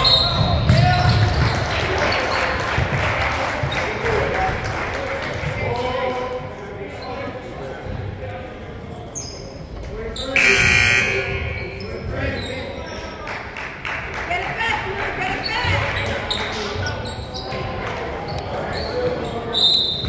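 Spectators talk and murmur in an echoing gym.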